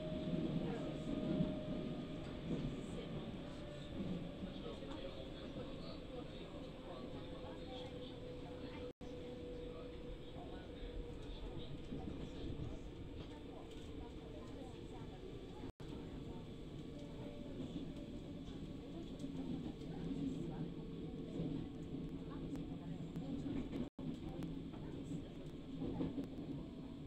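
A train rumbles steadily along.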